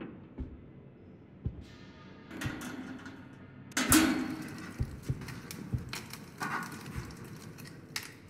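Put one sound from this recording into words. Metal clanks and rattles as a grate is pried.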